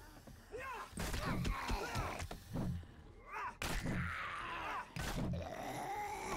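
A club thuds heavily against a body.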